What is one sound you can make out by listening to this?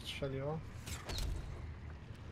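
A magical spell bursts with a sharp crackle.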